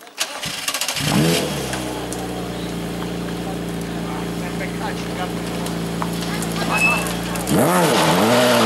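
A racing car engine idles with a steady low rumble.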